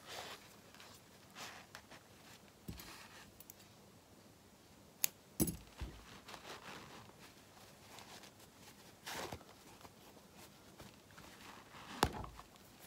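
Fabric rustles and crinkles as hands handle it.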